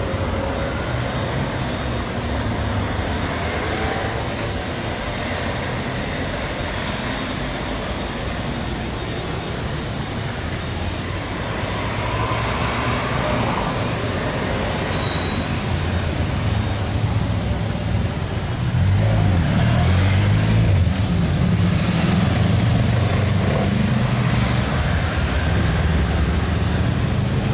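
City traffic rumbles steadily along a busy street outdoors.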